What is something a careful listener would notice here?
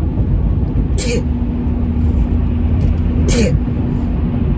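A young woman sniffs sharply.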